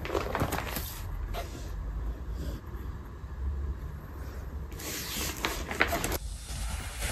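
A plastic poster sleeve crinkles as it is handled.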